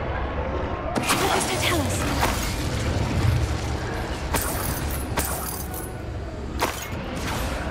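Magic spell blasts crackle and burst in quick bursts.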